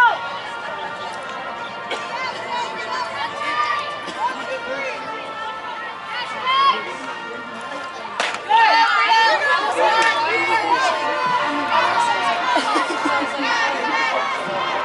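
Young women shout and cheer across an open field.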